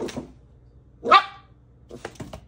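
A dog gives a sharp, high yelp.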